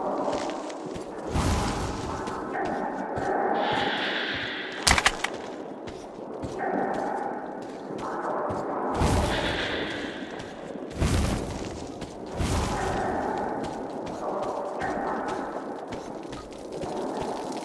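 Footsteps crunch slowly over loose ground.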